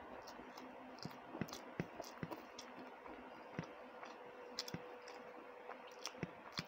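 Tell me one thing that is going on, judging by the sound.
Fingers squish and mix soft rice on a plate.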